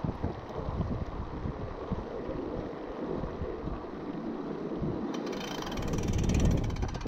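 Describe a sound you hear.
Bicycle tyres rattle over wooden boards.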